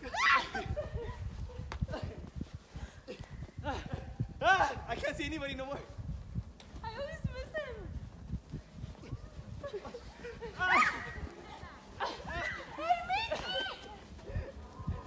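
Children shout and squeal excitedly nearby, outdoors.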